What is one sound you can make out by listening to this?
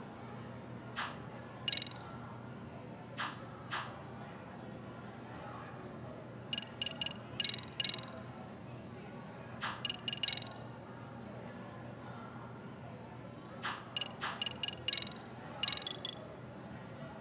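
Short electronic menu clicks and chimes sound in quick bursts.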